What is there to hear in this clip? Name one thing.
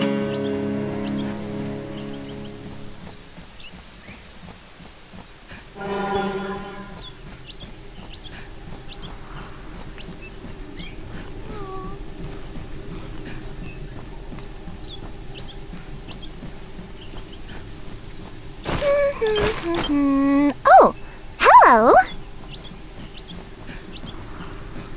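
Light footsteps run across grass.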